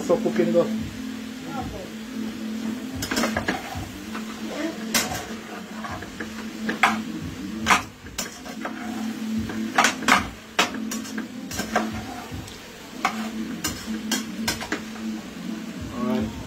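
A metal spoon scrapes and clinks against a pot while stirring food.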